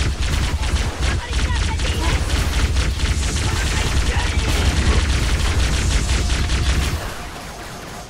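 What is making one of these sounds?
Energy guns fire rapidly in crackling bursts.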